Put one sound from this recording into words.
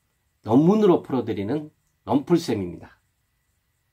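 A middle-aged man speaks animatedly, close to a microphone.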